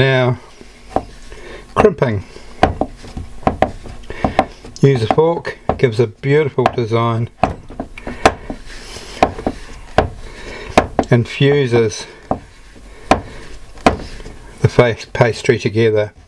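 A fork presses and taps repeatedly against a wooden board.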